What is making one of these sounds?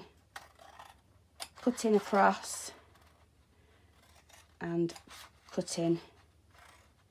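Scissors snip through card stock.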